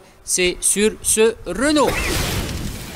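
A middle-aged man speaks close up.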